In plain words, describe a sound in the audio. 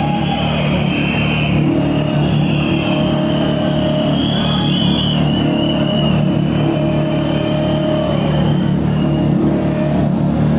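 Loud electronic dance music with a heavy bass beat plays through big loudspeakers.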